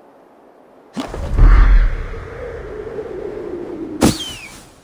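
A heavy body plunges into water with a loud splash.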